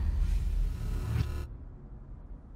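Footsteps thud quickly across a wooden floor.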